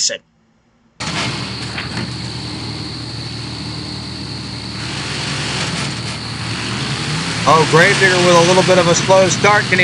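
A monster truck engine rumbles steadily.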